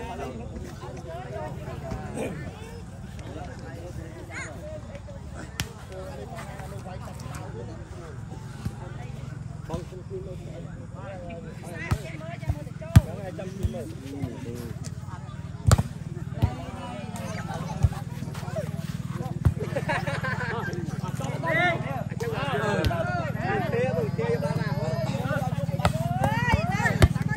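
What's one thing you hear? A volleyball thumps off players' hands and arms.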